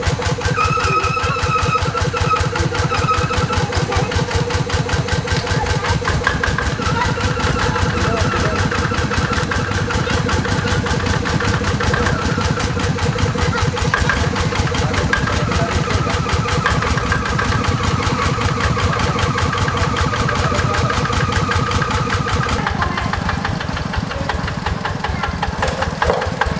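A small diesel engine chugs steadily close by.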